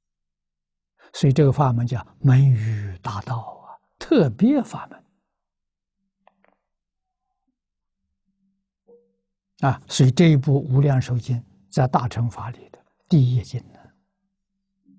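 An elderly man speaks calmly and measuredly close to a microphone, with long pauses.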